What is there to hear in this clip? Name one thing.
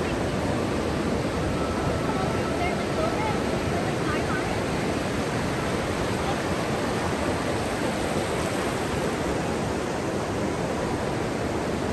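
Waves wash onto a beach with a steady roar.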